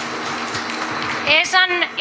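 A woman speaks through a microphone and loudspeakers.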